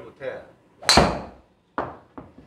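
A golf ball is struck with a sharp crack.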